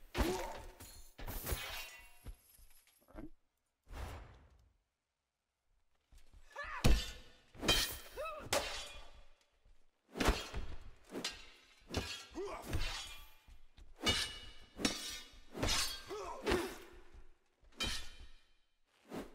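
Blades swing and strike again and again in a fierce fight.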